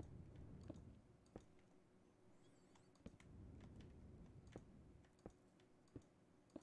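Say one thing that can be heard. Stone blocks are placed with short, dull knocks.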